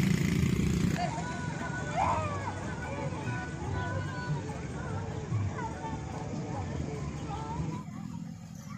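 Children chatter and call out nearby.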